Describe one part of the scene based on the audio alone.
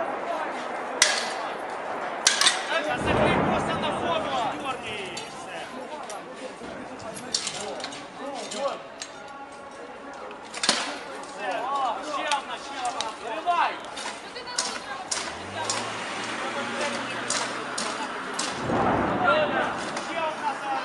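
A crowd of men and women talk and shout nearby outdoors.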